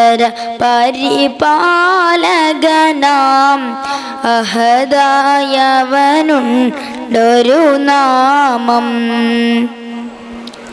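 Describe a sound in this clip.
A young boy sings a melodic chant into a microphone, heard through a loudspeaker in an echoing room.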